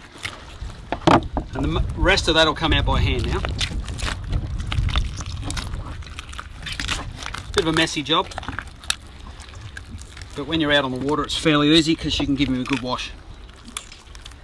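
Hands tear the gills out of a wet fish with soft squelching sounds.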